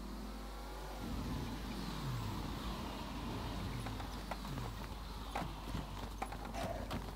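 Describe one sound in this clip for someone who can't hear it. A car engine rumbles and revs as a car pulls up.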